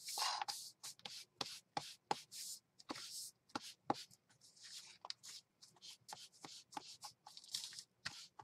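An ink pad dabs and taps repeatedly on paper.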